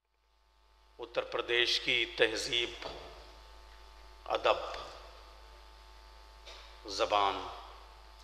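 A man speaks slowly and formally into a microphone, his voice ringing in an echoing room.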